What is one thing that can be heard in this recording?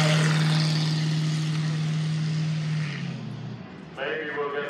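A racing car engine roars loudly as the car speeds past and fades away.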